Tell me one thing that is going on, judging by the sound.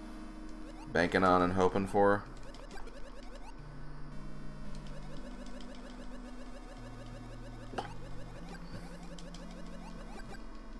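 Bouncy electronic video game music plays steadily.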